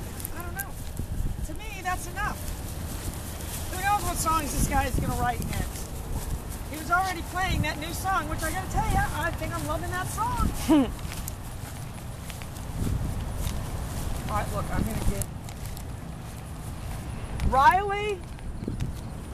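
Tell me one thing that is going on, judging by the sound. A woman talks to dogs in a bright, animated voice outdoors.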